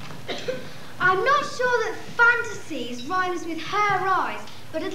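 A young girl sings clearly in a large hall.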